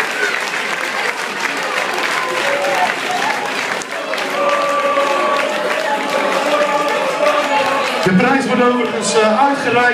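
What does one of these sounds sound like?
A crowd claps and cheers loudly in a room.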